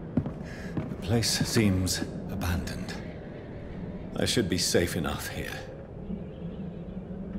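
A man speaks calmly and quietly.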